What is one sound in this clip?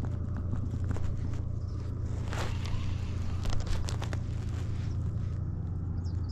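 A fishing reel clicks and whirs as the line is wound in.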